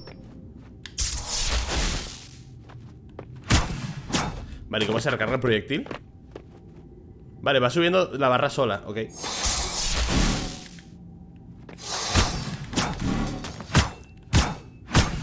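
Sword slashes and bursts of game sound effects ring out.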